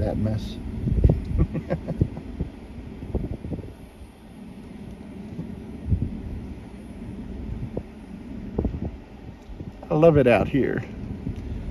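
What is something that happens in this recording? Wind blows in strong gusts outdoors, buffeting the air with a low rumble.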